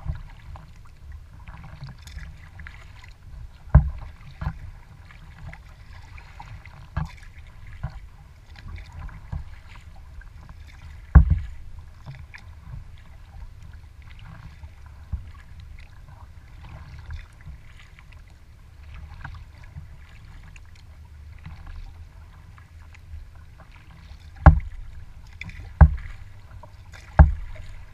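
Wind rumbles outdoors over open water.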